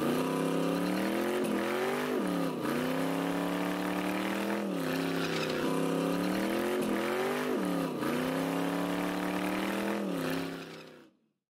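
Tyres squeal as they spin on pavement.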